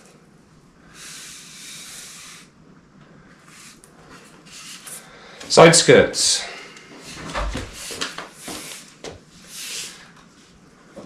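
Plastic wrapping rustles and crinkles as a long panel is handled.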